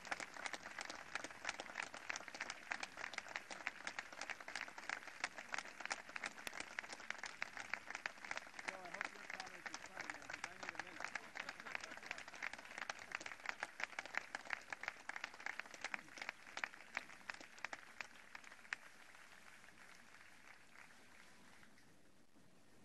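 A large crowd applauds outdoors, with dense clapping that slowly fades away.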